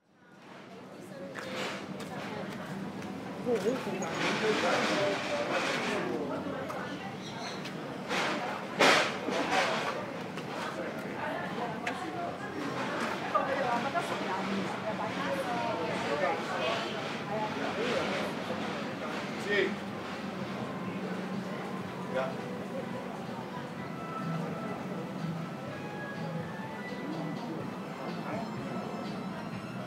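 A crowd of people chatters nearby in an open street.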